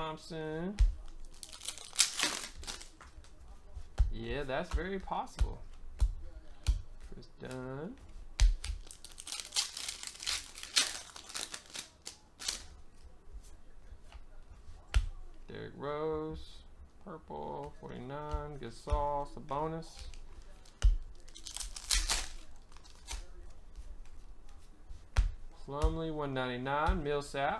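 Trading cards tap and slide against each other as they are sorted.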